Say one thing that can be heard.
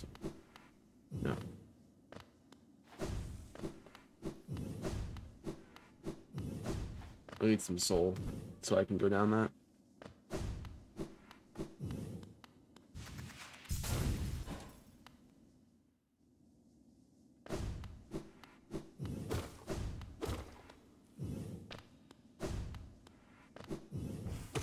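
Game sound effects of slashing and impacts ring out.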